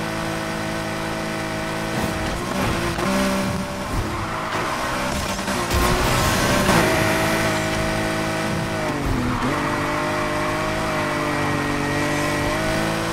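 A powerful car engine roars steadily at high revs.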